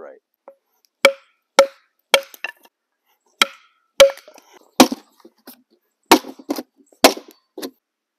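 A tool knocks sharply on wood several times.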